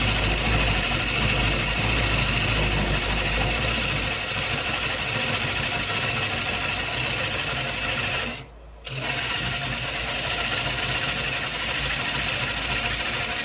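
A gouge cuts into spinning wood with a loud, rough hissing scrape.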